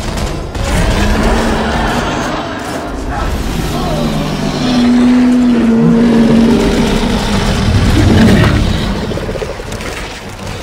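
A huge creature roars with a deep, rumbling growl.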